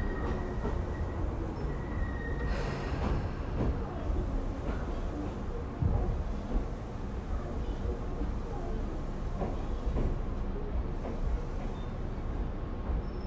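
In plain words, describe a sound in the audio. Train wheels clack and squeal over the rails.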